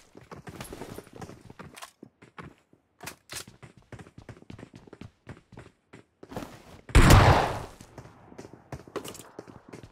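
Footsteps patter quickly across a hard floor.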